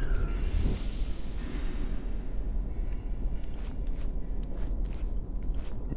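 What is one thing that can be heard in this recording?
Heavy footsteps scuff on a stone floor.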